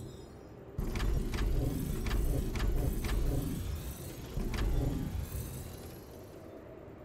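A deep explosive rumble booms and fades away.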